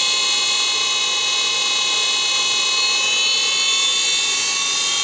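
An electric motor whines steadily at high speed.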